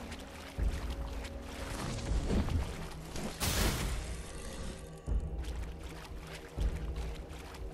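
A sword strikes with a heavy thud.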